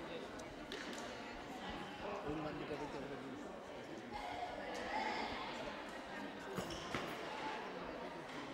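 Voices of players and spectators echo in a large sports hall.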